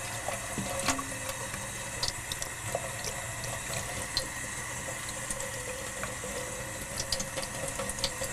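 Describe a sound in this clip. Water splashes and drips off a tile held under the tap.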